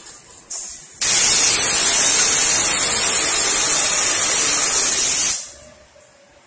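A loud hiss of air rushes from a machine.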